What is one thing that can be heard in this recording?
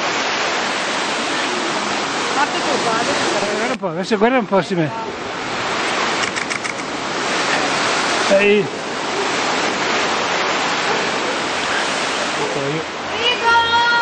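Wind rushes over the microphone outdoors.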